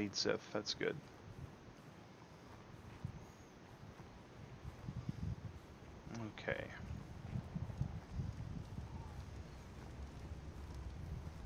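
Footsteps run over hard stone.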